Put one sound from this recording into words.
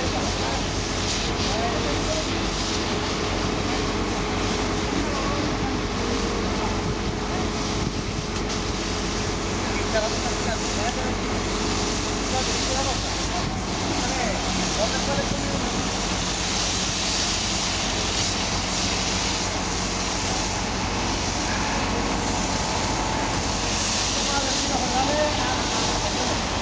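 A truck engine idles with a low steady rumble.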